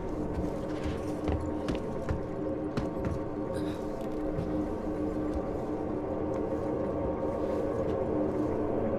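Footsteps thud slowly on a hard metal floor.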